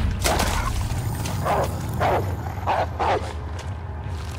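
A wolf howls.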